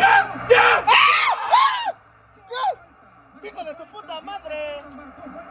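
A man shouts excitedly close by.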